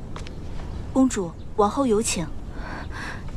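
A young woman speaks calmly from a short distance.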